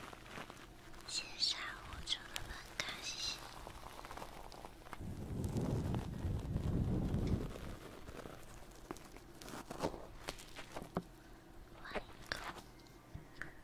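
A young woman makes wet mouth and kissing sounds right at a microphone.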